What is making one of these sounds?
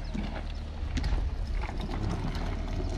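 A wheeled cooler rattles as it is pulled along.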